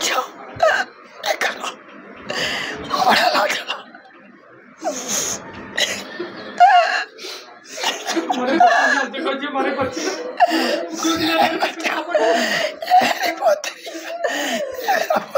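An elderly woman speaks tearfully and wails close to a microphone.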